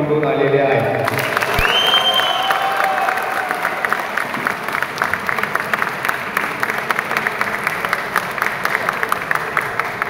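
A crowd claps rapidly.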